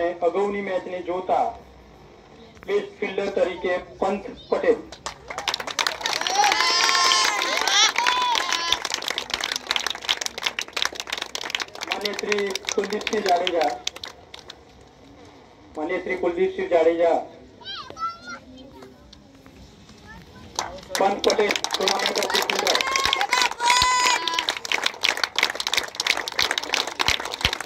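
A man speaks through a loudspeaker outdoors, announcing with pauses.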